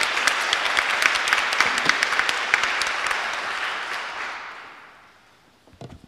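A group of people applaud, then the clapping fades away.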